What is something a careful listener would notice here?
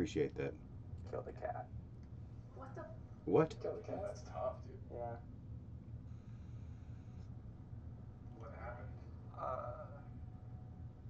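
A man speaks calmly nearby.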